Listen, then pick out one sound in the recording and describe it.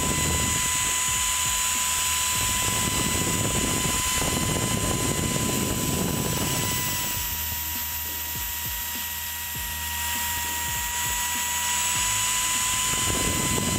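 A CNC router spindle whines steadily at a high pitch.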